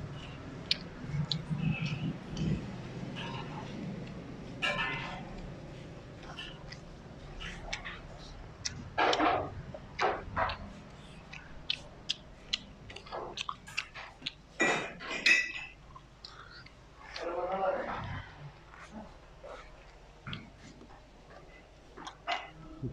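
A young man chews food noisily with his mouth close by.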